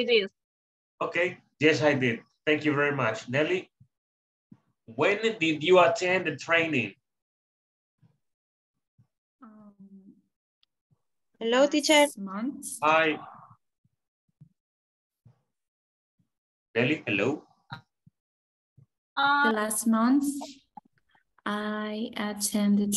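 A woman speaks with animation through an online call.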